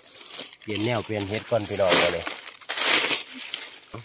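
Dry leaves rustle as hands brush through them.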